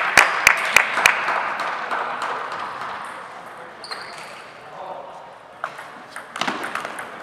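A ping-pong ball clicks back and forth on paddles and a table in an echoing hall.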